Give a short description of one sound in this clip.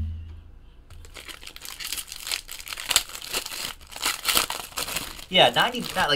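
Foil wrapping crinkles and tears as a pack is ripped open.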